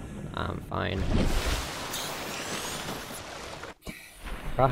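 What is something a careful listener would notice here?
Water rushes and churns at the surface.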